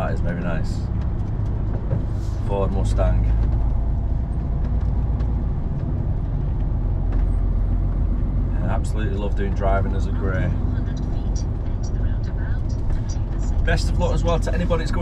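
Tyres hum on a road.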